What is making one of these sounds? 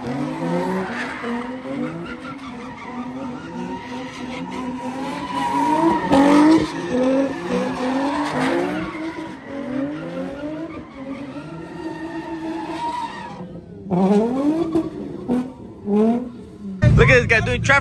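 A car engine revs loudly, rising and falling over and over.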